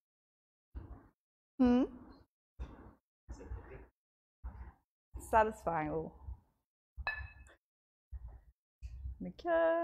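A young woman speaks calmly in short phrases through a microphone.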